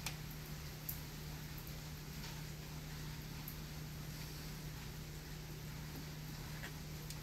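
A plastic funnel clicks and scrapes against a plastic opening.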